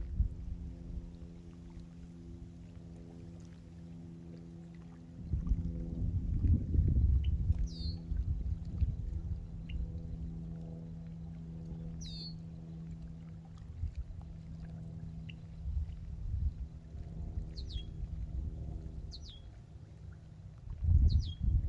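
Small waves lap gently at a shore.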